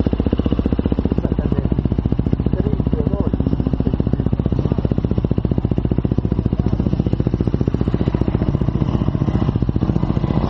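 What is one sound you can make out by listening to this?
A dirt bike engine idles with a fast, steady throb, close by.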